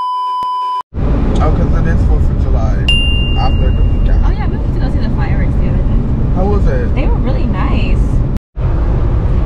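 A young woman talks close by inside a moving car.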